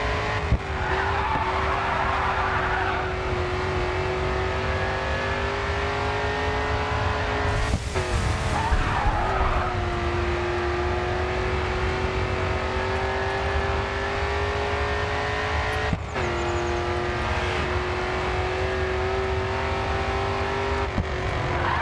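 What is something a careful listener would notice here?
A V8 muscle car engine roars at full throttle and shifts up through the gears.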